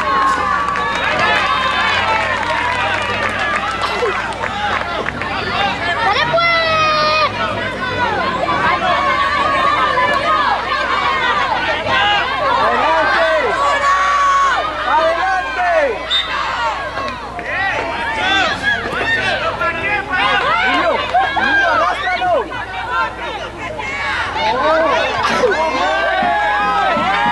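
Children shout to each other while playing football.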